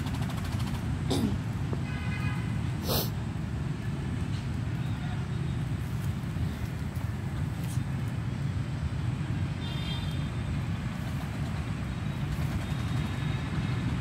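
Motorbikes hum and rumble steadily as they pass by at a distance.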